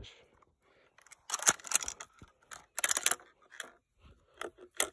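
Footsteps crunch on dry ground and leaves.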